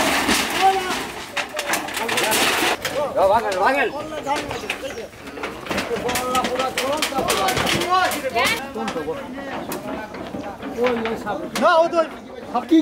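Corrugated metal sheets clatter and scrape as they are pushed over.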